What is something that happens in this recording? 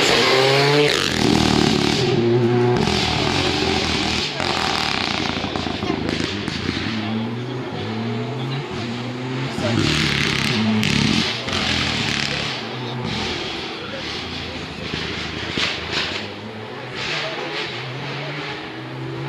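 A rally car engine fades into the distance, revving hard between gear changes.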